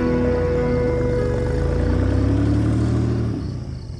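A car drives up with a low engine hum.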